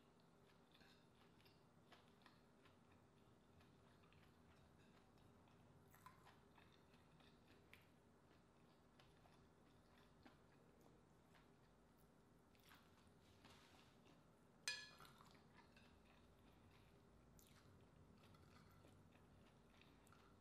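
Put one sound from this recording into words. A woman chews food with soft, wet mouth sounds close up.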